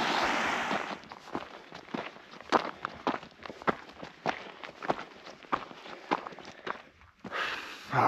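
Boots crunch on loose gravel at a steady walking pace.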